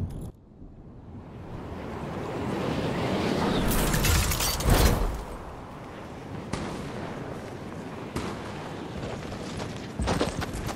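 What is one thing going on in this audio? Wind rushes past during a glide.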